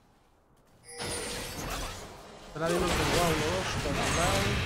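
Video game sound effects play.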